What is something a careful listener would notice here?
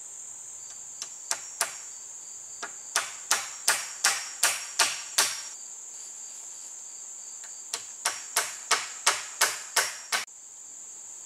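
A hammer knocks sharply on a wooden post in quick bursts of blows.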